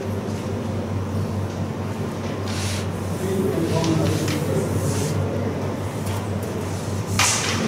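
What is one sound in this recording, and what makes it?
Wooden game pieces clatter and slide on a board as hands gather them.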